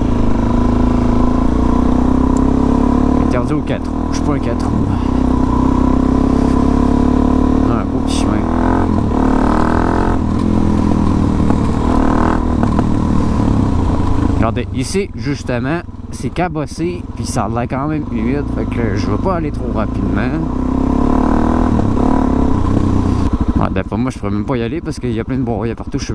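Tyres roll and crunch over a gravel road.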